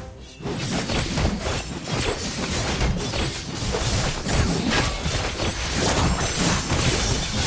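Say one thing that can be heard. Magic blasts and sword hits crackle and clash in a busy game battle.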